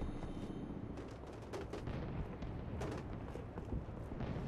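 A pistol fires sharp shots in quick succession.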